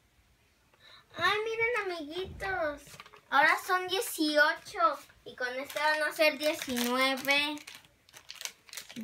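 A young girl speaks up close with animation.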